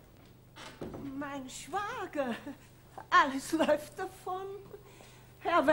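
A middle-aged woman speaks with animation, close by in a room.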